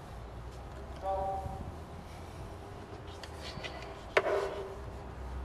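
A ukulele is strummed and plucked close by.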